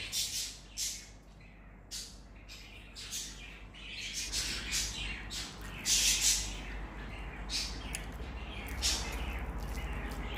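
Fingers squish and mix soft rice and curry on a metal plate.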